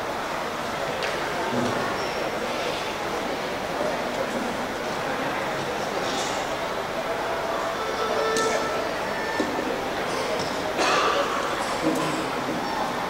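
Equipment knocks and thumps on a wooden stage.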